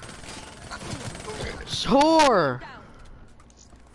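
Gunshots crack sharply in a video game.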